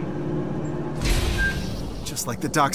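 A heavy metal door slides open with a loud whoosh.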